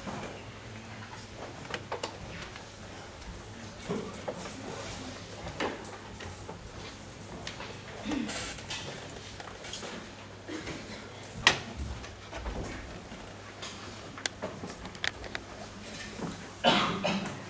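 People murmur and shuffle about in an echoing hall.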